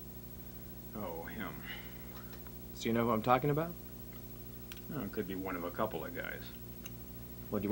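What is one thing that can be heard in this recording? A second man answers calmly nearby.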